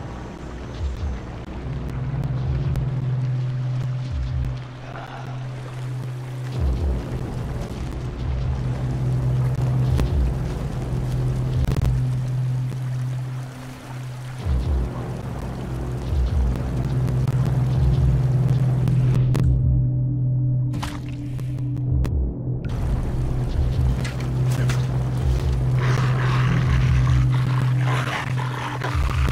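Footsteps thud on a dirt path.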